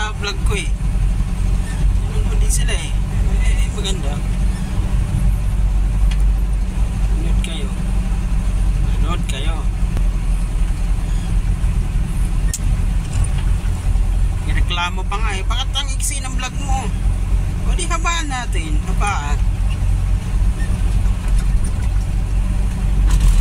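A vehicle engine rumbles low and steadily while driving.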